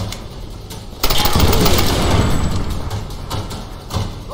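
An explosion booms and fire roars.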